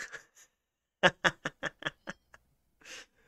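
A young man laughs in short bursts close to a microphone.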